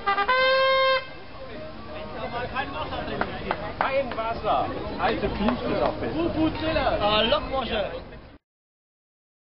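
Several men talk nearby in a busy crowd outdoors.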